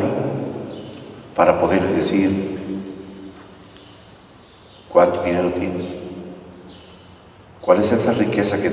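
A man speaks calmly into a microphone, echoing in a large hall.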